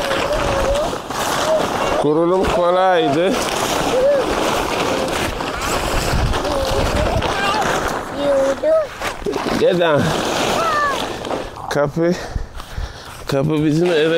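Young children shout and squeal excitedly outdoors.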